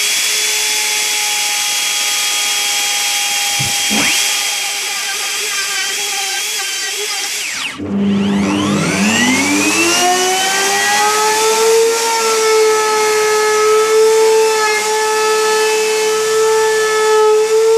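An electric router whines loudly as it cuts into wood.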